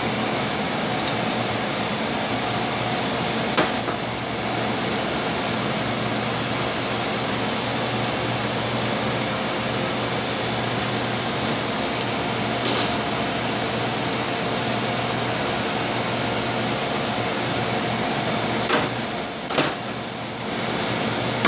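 A knife slices through roasted meat.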